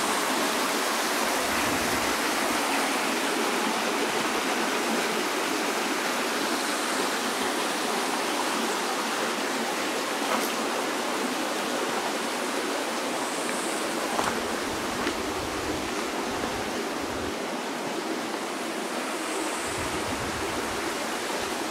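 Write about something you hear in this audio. A shallow stream trickles over rocks.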